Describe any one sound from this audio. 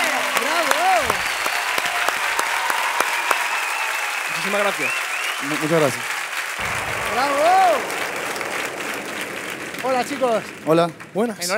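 A crowd applauds and cheers in a large hall.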